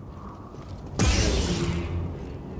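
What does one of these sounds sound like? An energy blade ignites with a loud crackling whoosh and hums.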